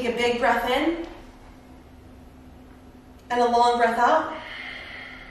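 A young woman speaks with energy into a nearby microphone.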